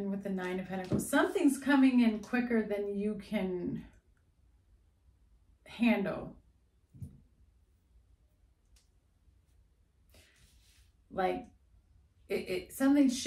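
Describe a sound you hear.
A young woman talks with animation close to a microphone, in short bursts with pauses.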